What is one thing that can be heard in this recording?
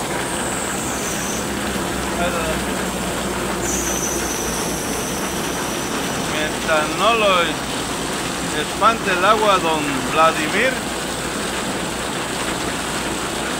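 Heavy rain pours down steadily outdoors.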